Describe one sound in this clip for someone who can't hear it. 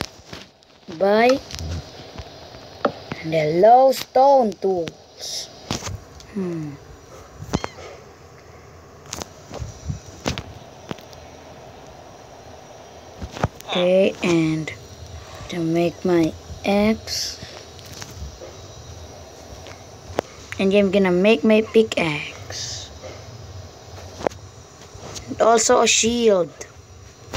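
A young boy talks close to a microphone, with animation.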